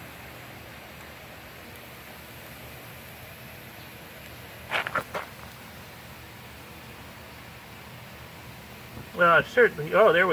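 Acid fizzes and hisses as it eats into a glove.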